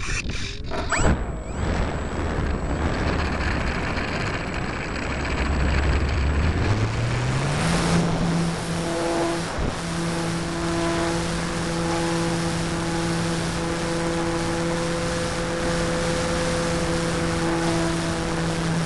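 An electric motor starts up and whines, rising in pitch and then holding steady.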